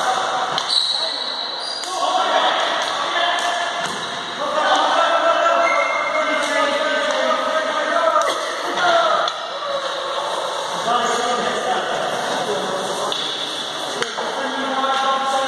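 Players shout to each other across a large echoing hall.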